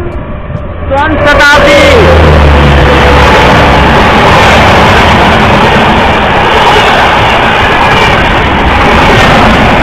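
A train rumbles past loudly close by.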